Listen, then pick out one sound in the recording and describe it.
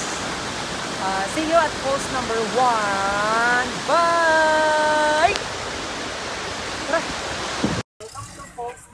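Water roars steadily from a waterfall.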